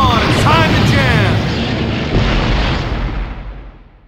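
A laser zaps with a sweeping, warbling tone.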